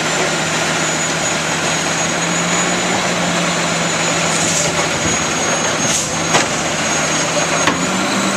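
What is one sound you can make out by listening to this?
A garbage truck engine idles loudly nearby.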